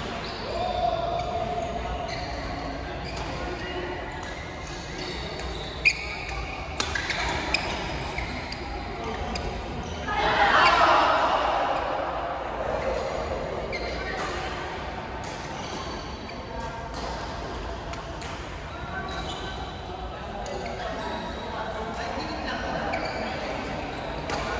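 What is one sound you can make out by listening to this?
Many players call out and chatter across a large echoing hall.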